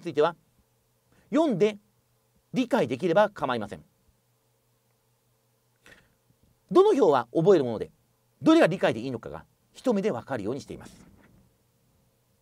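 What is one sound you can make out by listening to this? A middle-aged man speaks calmly into a close microphone, in short phrases with pauses.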